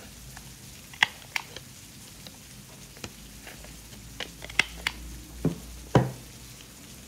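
A corner punch clicks sharply.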